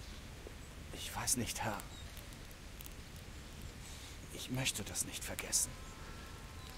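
A young man answers quietly and hesitantly, close by.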